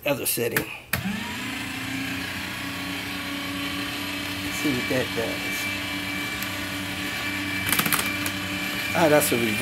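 A paper shredder motor starts and hums steadily.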